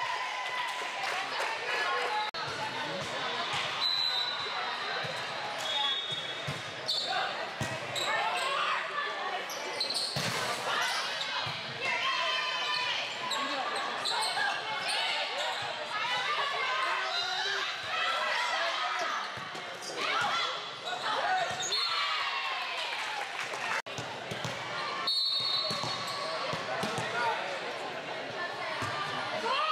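Young women shout and call out to each other across a large echoing hall.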